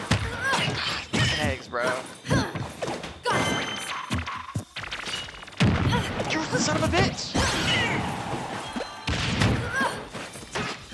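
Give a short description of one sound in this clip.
Video game characters clash with sharp hit and blast sound effects.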